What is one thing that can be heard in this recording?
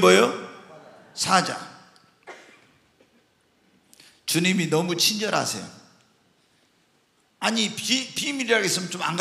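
A middle-aged man speaks with animation through a microphone in an echoing room.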